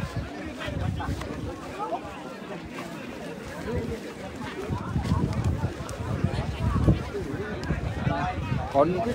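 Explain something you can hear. Wind rumbles across the microphone.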